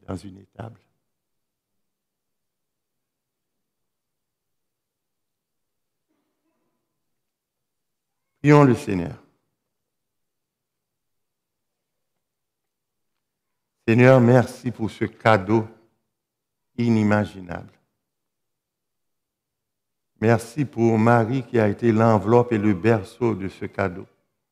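An elderly man speaks slowly and calmly through a microphone, with long pauses.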